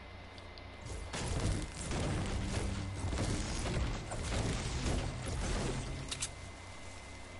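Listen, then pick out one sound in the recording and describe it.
A pickaxe strikes wood again and again.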